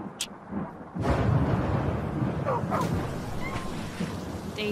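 Thunder rumbles loudly.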